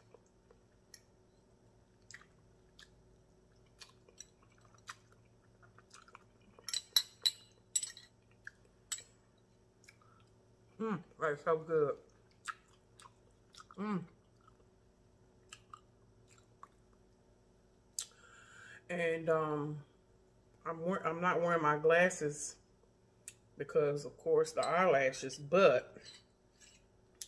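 A woman chews and smacks her lips close by.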